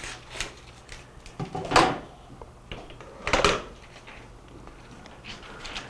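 Equipment knocks and clatters against a case.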